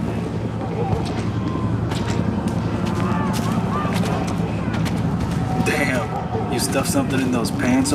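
Footsteps slap on wet pavement.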